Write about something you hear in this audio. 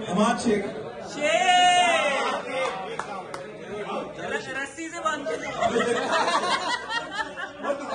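Men laugh and cheer nearby.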